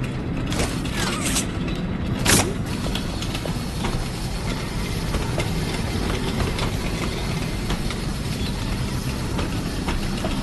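A small cart rumbles along metal rails.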